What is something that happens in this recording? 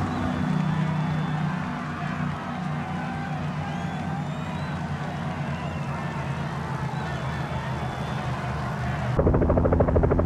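A crowd cheers and whistles along the roadside.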